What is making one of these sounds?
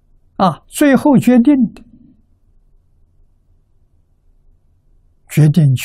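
An elderly man speaks calmly and warmly into a close microphone, with pauses between phrases.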